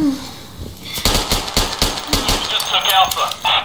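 A gun fires several rapid shots.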